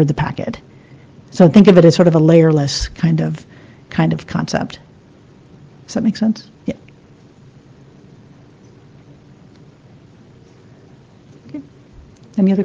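A woman speaks calmly into a microphone, with pauses.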